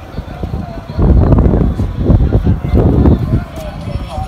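Wind gusts roar against the microphone.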